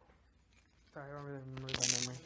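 A woman speaks nearby.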